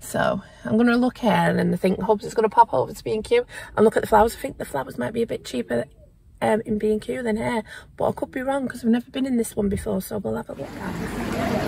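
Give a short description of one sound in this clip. A woman talks animatedly close by.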